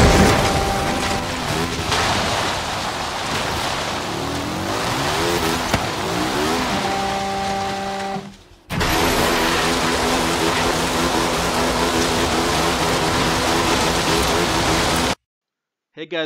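Tyres skid and rumble over rough ground.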